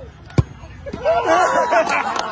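A crowd of men cheers and shouts loudly.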